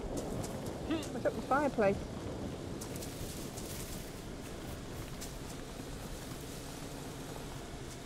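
Footsteps rustle through grass and bushes.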